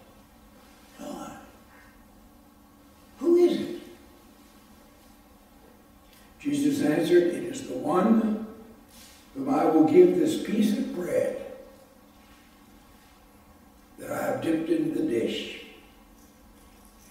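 An elderly man speaks slowly and calmly through a microphone, with pauses, in a room with a slight echo.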